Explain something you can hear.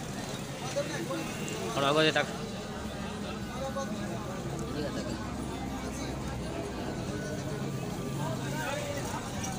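A man sips a hot drink with a slurp.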